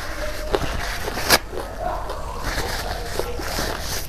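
A woman crinkles a paper tissue.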